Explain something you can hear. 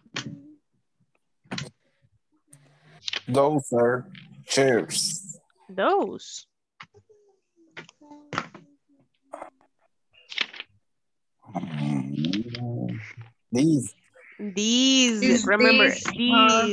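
A woman speaks calmly and clearly over an online call, with pauses.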